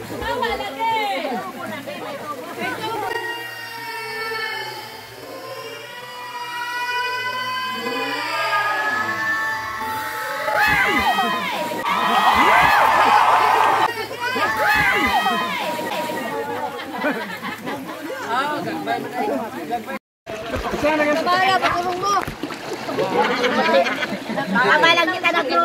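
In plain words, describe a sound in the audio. Swimmers splash in the water.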